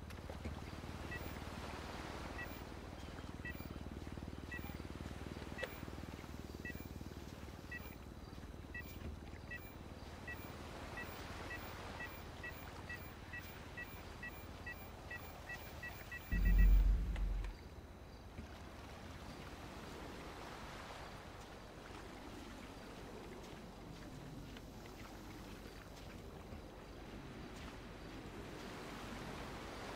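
Gentle waves wash onto a sandy shore.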